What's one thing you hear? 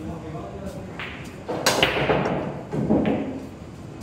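Pool balls crack and scatter as a cue breaks the rack.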